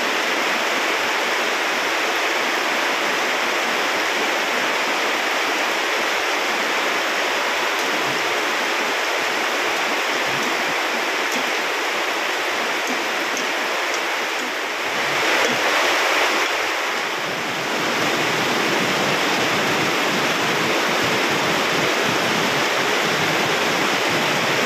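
A gas burner hisses under a wok.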